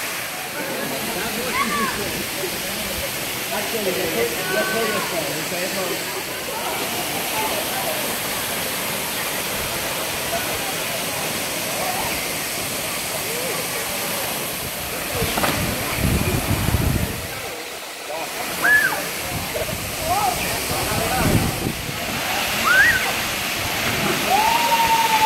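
A stream of water rushes and splashes steadily over rocks.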